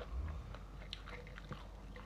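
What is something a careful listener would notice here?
Fingers pick through cooked rice on a plate.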